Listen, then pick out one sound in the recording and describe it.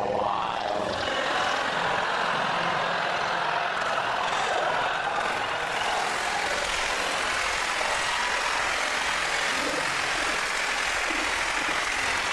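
An audience laughs and applauds loudly and steadily.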